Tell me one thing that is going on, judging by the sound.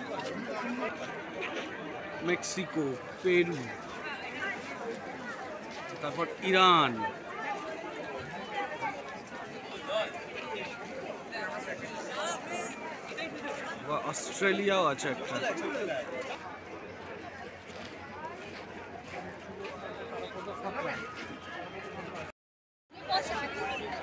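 A crowd of people chatters all around, outdoors.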